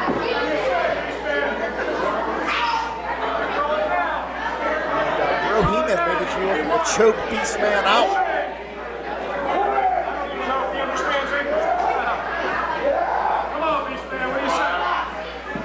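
A crowd shouts and cheers in an echoing hall.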